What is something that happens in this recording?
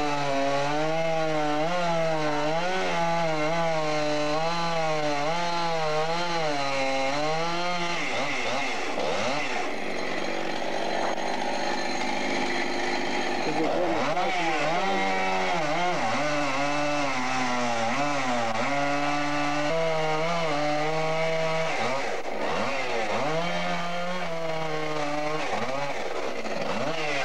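A chainsaw engine runs loudly, revving up and down.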